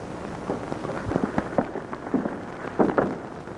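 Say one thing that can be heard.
Boots thud on wooden boards as several men walk.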